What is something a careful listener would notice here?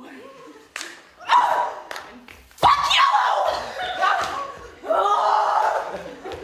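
A young woman shouts with animation on a stage.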